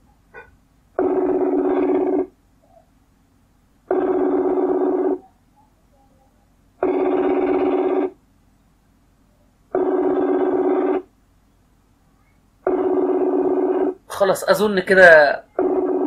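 A phone line rings repeatedly with an even tone.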